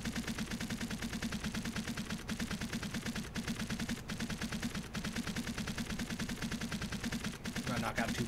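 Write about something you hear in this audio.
A game interface ticks rapidly and steadily as a counter climbs.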